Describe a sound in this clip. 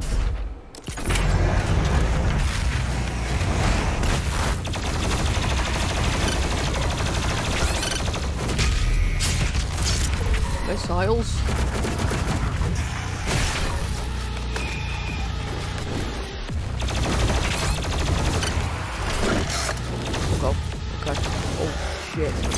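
Heavy guns fire in rapid, booming bursts.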